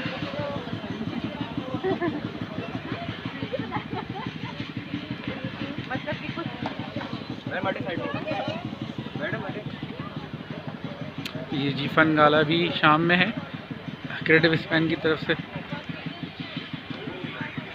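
Men and women chat quietly nearby outdoors.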